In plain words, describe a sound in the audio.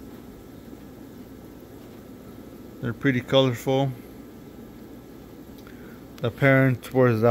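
Aquarium filters bubble softly and steadily.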